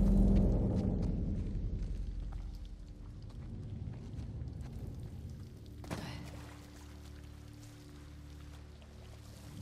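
Footsteps crunch on rubble.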